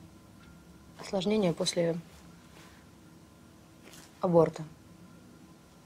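A young woman speaks quietly and calmly close by.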